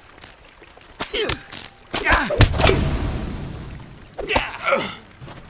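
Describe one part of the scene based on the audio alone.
Blades clash and strike sharply in a fight.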